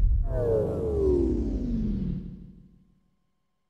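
A large creature lets out a falling, dying groan.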